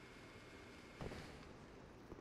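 A figure lands with a thud on a wooden platform.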